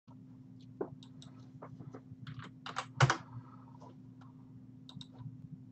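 Keys click on a computer keyboard.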